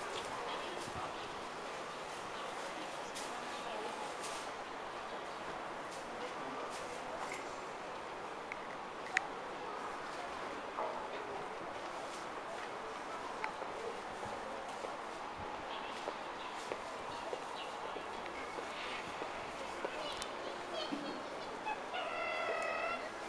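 A busy outdoor walkway hums with the murmur of people around.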